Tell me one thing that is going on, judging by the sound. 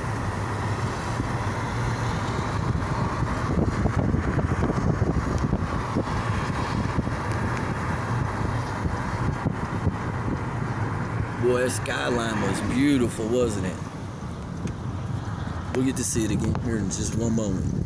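A car drives along a road with a steady low rumble of tyres and engine.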